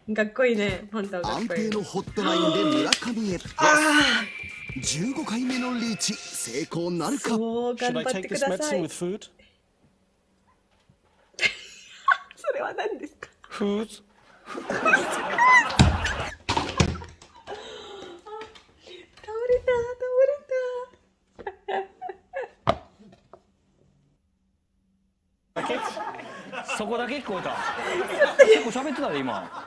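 A young woman laughs loudly close to a microphone.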